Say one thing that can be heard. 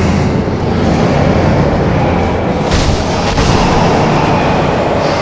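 Magical blasts roar and crackle loudly.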